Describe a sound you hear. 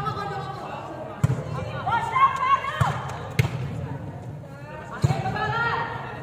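Young women call out and shout to each other during play.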